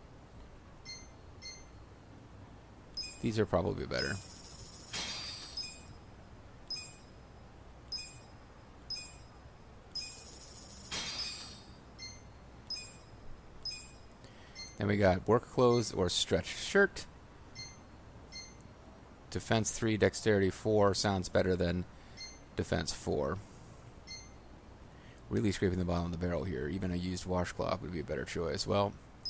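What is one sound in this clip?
Soft electronic menu blips sound each time a selection moves.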